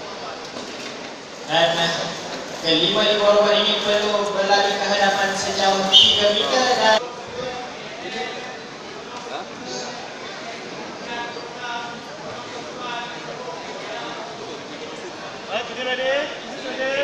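A crowd chatters and murmurs in a large, echoing hall.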